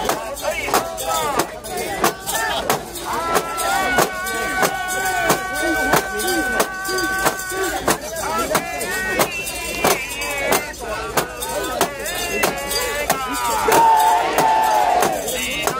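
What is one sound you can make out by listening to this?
Many people clap their hands in a rhythm.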